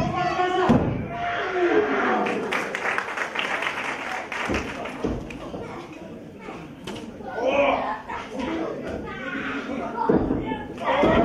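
Bodies slam down onto a wrestling ring mat with heavy thuds.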